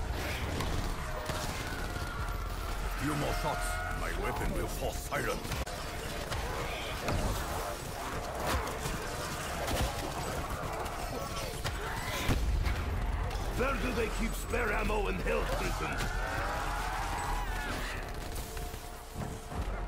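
Gunfire bursts out in rapid shots.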